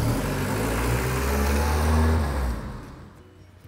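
A car engine hums as a car rolls past.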